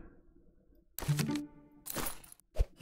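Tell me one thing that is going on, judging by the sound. A game chime rings out for an upgrade.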